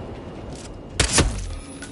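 A pistol fires a single sharp shot.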